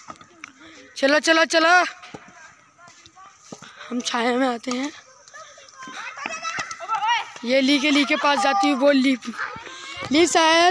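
Boys shout loudly nearby outdoors.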